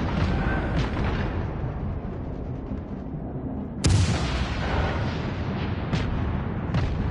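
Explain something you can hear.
Naval guns fire in loud booming blasts.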